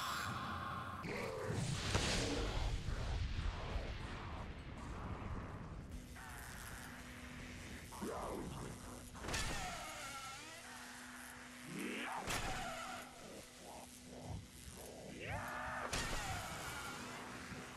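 Electricity crackles and buzzes in sharp bursts.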